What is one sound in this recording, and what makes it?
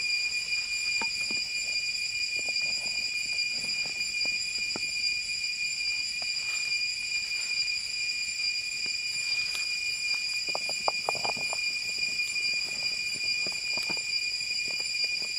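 Water splashes and pours as a scoop dips into a pot.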